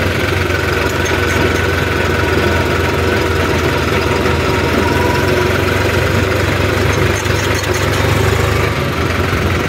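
Tractor tyres rumble over the road.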